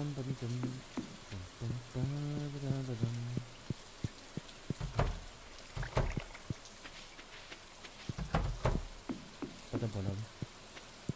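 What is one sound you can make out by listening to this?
Light footsteps patter steadily on dirt and wooden planks.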